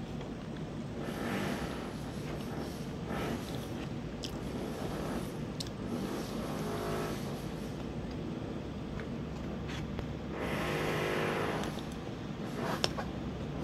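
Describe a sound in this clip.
A woman chews and slurps food close by.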